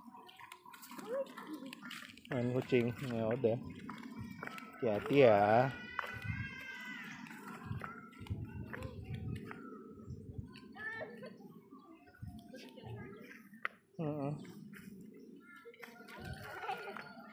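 Small bare feet patter on stones and grass.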